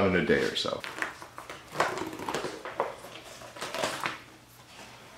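Thin plastic film crackles as it is peeled off a rubber mat.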